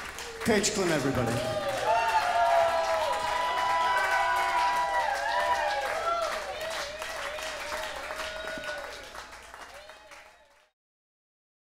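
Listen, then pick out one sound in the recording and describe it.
A mandolin plays a melody that slowly fades out.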